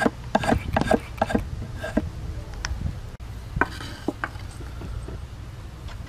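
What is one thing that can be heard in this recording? A drawknife scrapes and shaves wood in short, repeated strokes.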